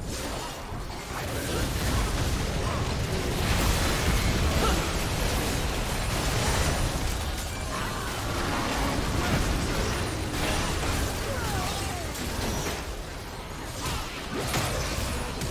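Video game spell effects crackle and burst rapidly in a battle.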